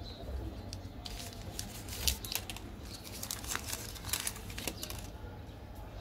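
Foil wrapping crinkles and tears as a chocolate bar is unwrapped.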